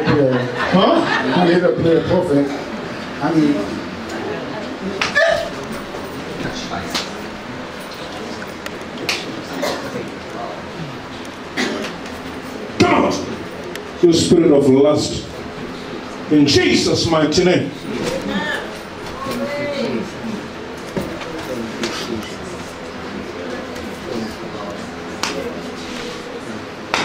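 A man speaks loudly and forcefully into a microphone in a room with some echo.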